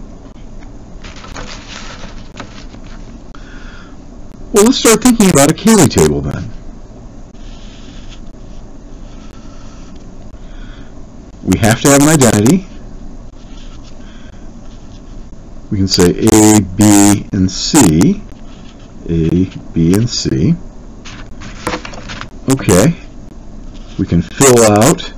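A marker squeaks and scratches across paper.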